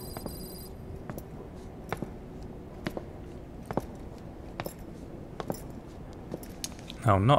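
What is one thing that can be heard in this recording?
Footsteps tap slowly on a hard floor.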